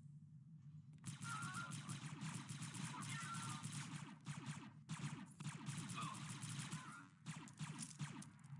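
A laser gun fires in rapid, sharp bursts.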